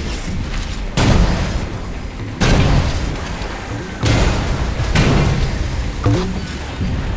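Explosions boom loudly now and then.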